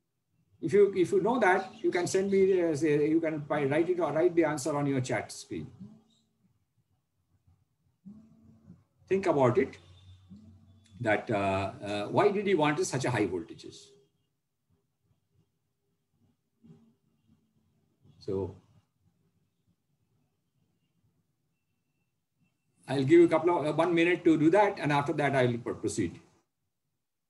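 A middle-aged man speaks calmly over an online call, pausing between phrases.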